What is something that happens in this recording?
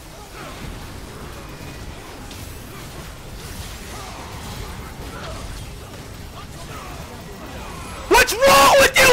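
Spell blasts and clashes of a video game fight crackle quietly.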